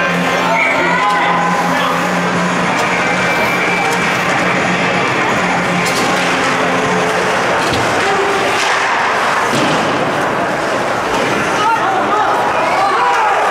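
A crowd of spectators murmurs and cheers in a large echoing rink.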